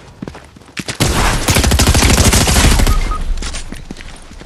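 Rapid gunfire rattles loudly at close range.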